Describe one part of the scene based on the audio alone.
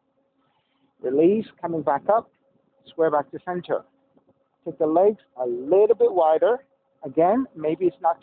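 A man speaks calmly and clearly into a nearby microphone.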